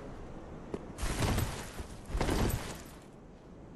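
A game character leaps and swings a heavy sword with a whoosh.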